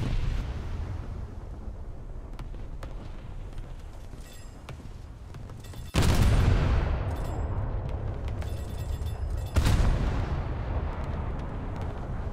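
Shells splash and burst in the sea.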